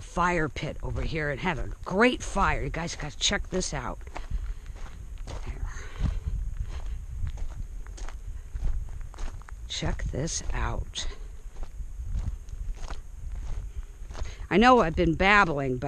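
Footsteps crunch steadily on loose gravel.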